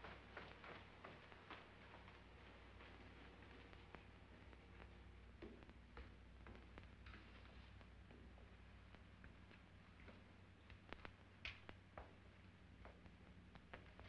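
Footsteps tread slowly on a wooden floor.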